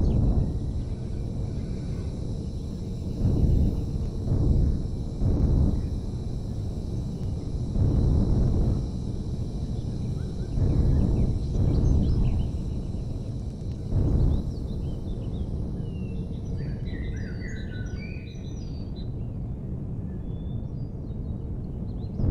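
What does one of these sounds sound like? A vehicle engine rumbles low and steadily, swelling now and then.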